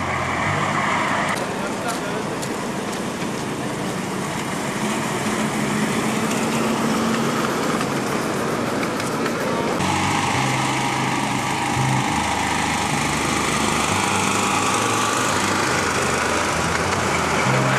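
A small locomotive engine hums steadily.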